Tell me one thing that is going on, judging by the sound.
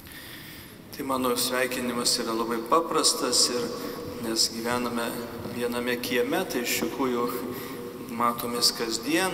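A man chants in a steady singing voice through a microphone in a large echoing hall.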